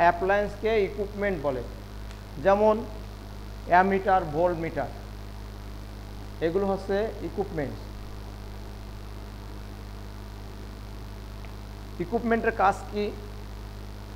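A man speaks calmly in short bursts, with pauses.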